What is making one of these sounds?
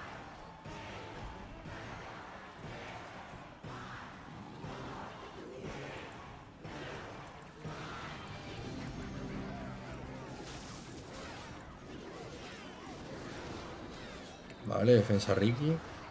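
Video game sound effects and music play.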